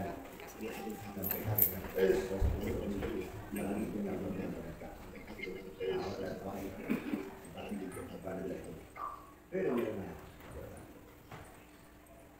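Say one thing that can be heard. A woman speaks calmly into a microphone in a large room with a slight echo.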